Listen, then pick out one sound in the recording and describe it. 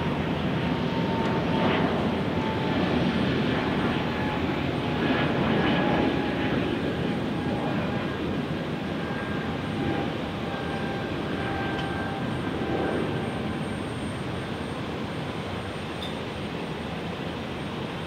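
A jet airliner's engines roar loudly overhead and slowly fade as it climbs away.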